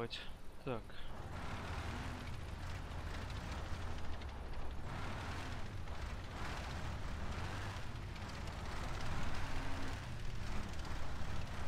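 A heavy vehicle's engine rumbles steadily as it drives.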